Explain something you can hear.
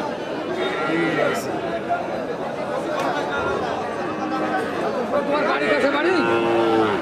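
A crowd of men chatter loudly all around outdoors.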